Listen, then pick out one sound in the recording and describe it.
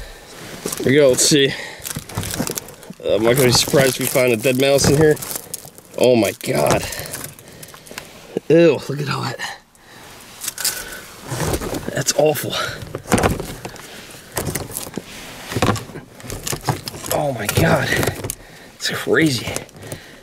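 Dry nesting material rustles and crackles as a hand pulls it out.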